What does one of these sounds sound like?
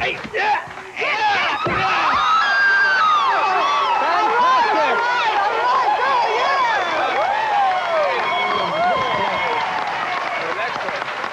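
A crowd of men and women cheers and whoops loudly.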